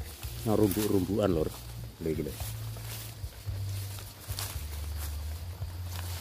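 Leaves rustle as a hand brushes through low plants.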